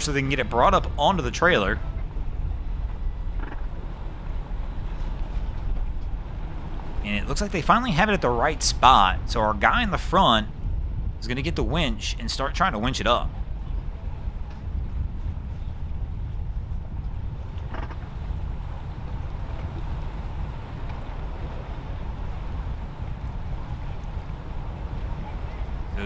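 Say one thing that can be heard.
Water laps gently against a boat hull.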